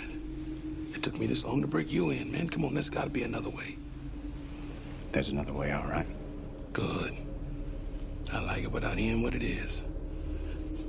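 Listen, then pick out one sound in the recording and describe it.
A man speaks in a low, calm voice up close.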